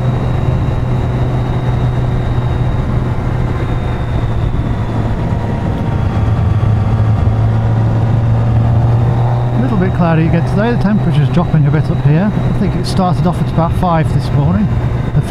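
Wind buffets a helmet microphone.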